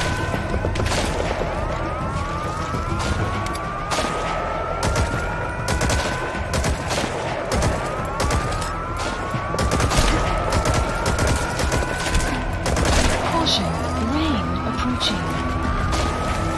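Rifle shots crack sharply, one after another.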